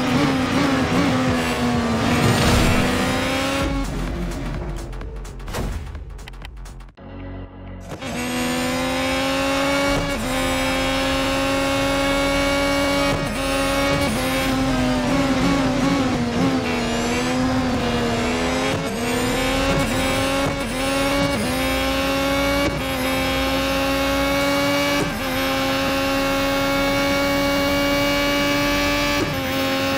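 A racing car engine whines loudly at high revs, shifting up through the gears.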